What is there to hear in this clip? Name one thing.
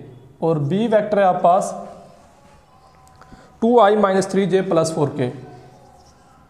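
A man speaks clearly and steadily, close by.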